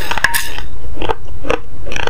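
A spoon scrapes against a plate.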